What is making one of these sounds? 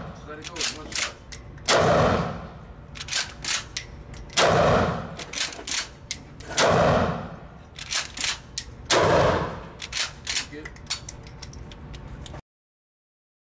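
A shotgun's pump action clacks back and forth.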